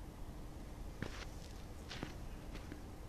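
Shoes scuff and tap on hard ground.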